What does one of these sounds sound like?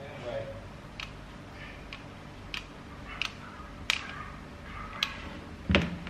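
A glue gun's trigger clicks several times.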